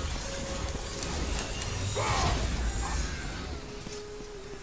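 A fiery blast roars with a deep rumble.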